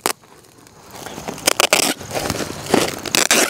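Gravel crunches underfoot.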